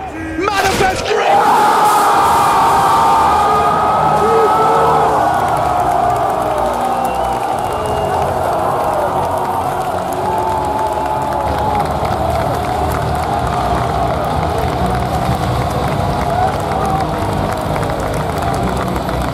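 A huge crowd cheers and roars in a large echoing arena.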